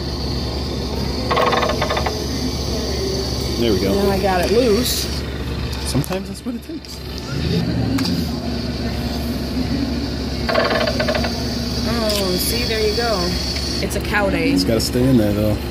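A claw machine plays a bright electronic jingle.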